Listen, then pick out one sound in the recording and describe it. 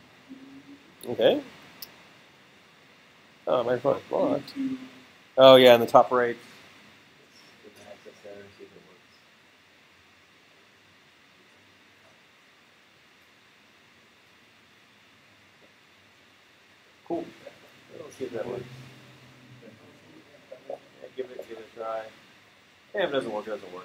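A man talks over an online call.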